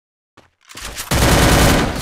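A rifle fires in a shooting game.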